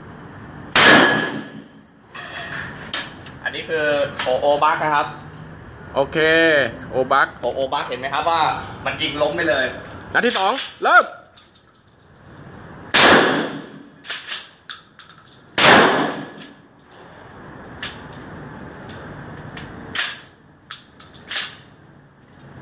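A shotgun fires loud, sharp blasts that echo briefly.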